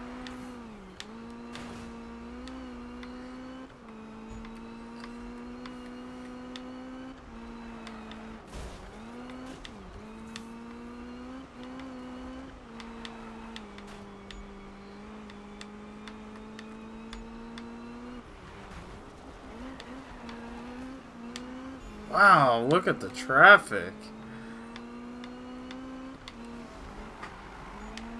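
A car engine drones steadily at high revs, shifting pitch as gears change.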